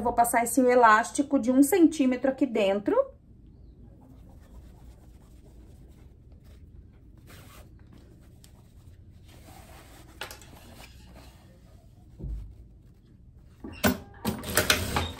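Cloth rustles as it is folded and handled.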